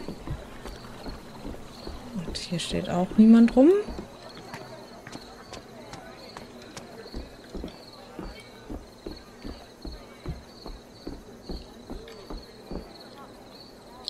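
Footsteps thud steadily on wooden boards.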